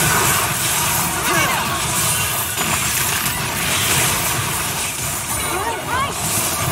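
Magic spells whoosh and clash in a busy battle.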